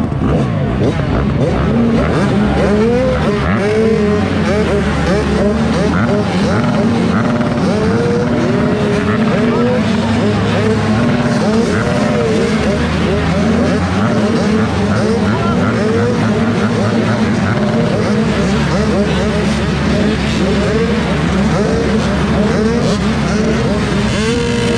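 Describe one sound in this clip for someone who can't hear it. A dirt bike engine idles close by.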